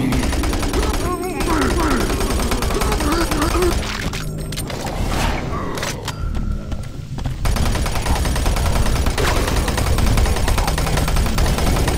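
A shotgun fires in rapid, loud blasts.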